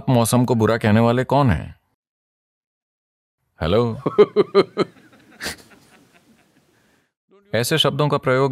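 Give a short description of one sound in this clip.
An elderly man speaks calmly and expressively into a close microphone, with pauses.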